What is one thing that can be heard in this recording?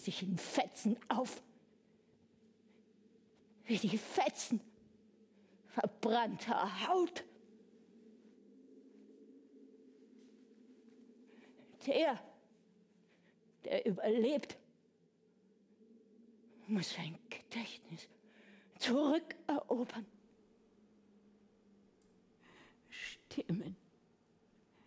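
An elderly woman speaks in short, halting bursts with long pauses.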